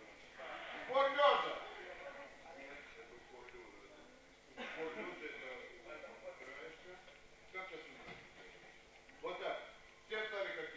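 A man calls out instructions loudly in an echoing hall.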